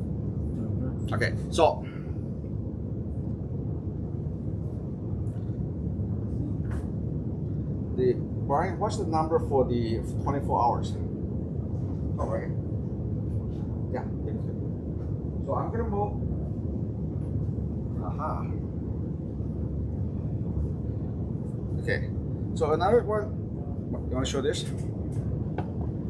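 A middle-aged man speaks calmly close by, with pauses.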